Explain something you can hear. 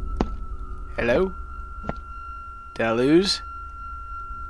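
A young man speaks briefly into a microphone, in short bursts.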